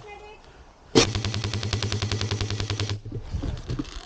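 An airsoft gun fires a rapid burst.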